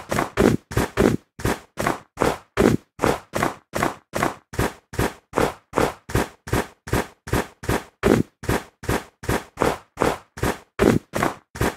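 Footsteps crunch steadily on snow at a quick, even pace.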